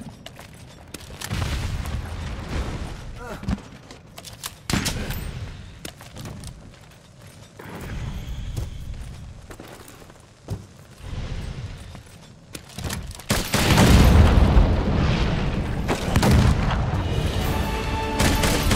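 A giant dragon crashes and rumbles heavily as it moves.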